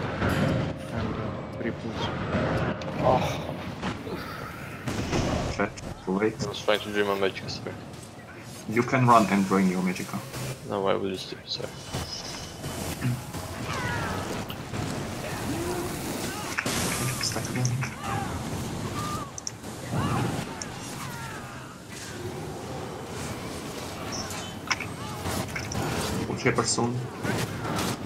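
Magic spells crackle and burst with rapid bangs in a battle.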